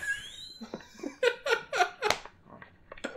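Two young men laugh loudly together.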